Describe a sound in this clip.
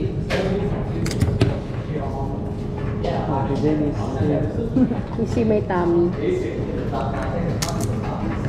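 Plastic bottles are set down with knocks on a hard table.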